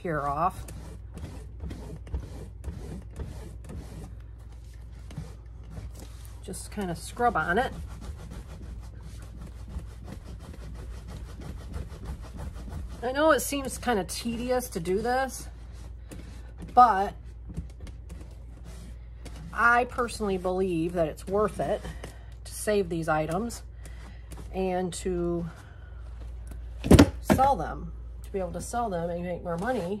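Leather rustles and creaks as hands rub and squeeze a bag.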